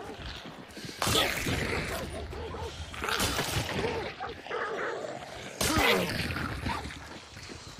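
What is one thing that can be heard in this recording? A hostile figure snarls and grunts up close.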